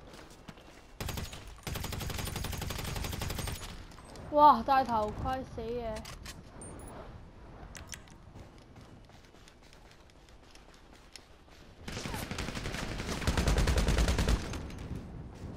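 Rapid bursts of automatic gunfire ring out close by.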